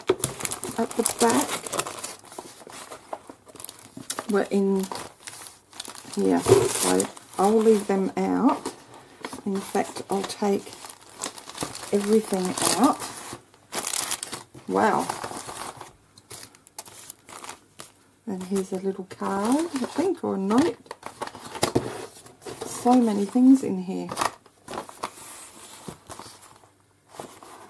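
Plastic packets crinkle and rustle as they are handled.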